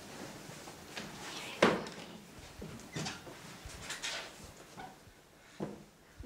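A wooden door creaks open and bumps shut.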